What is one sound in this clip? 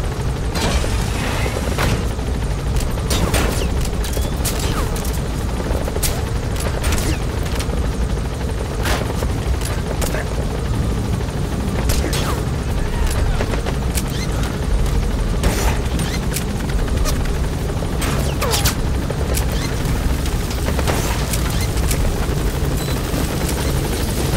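A helicopter's rotor thumps and roars steadily.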